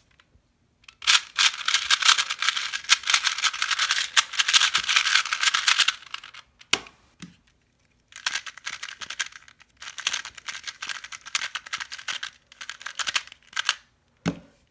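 A plastic puzzle cube clicks and rattles as it is twisted rapidly.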